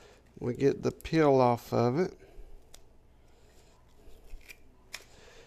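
Papery onion skin crackles as it is peeled.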